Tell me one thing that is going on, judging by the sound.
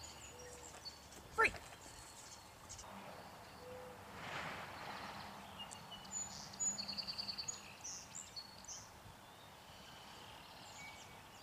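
A woman calls out encouragingly to a dog outdoors.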